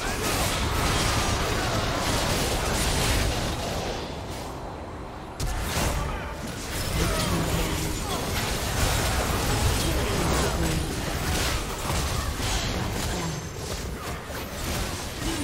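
Magic blasts and hits crackle and boom in a hectic fight.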